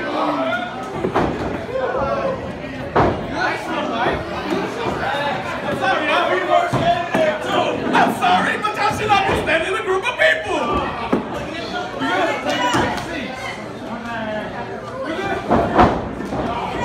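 Bodies slam onto a wrestling ring mat with heavy thuds.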